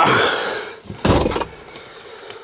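A vehicle door thuds shut.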